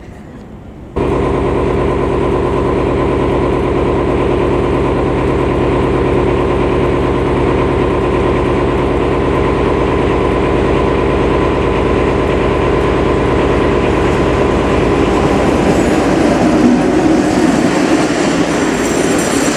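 A train engine drones as a train approaches and rushes past.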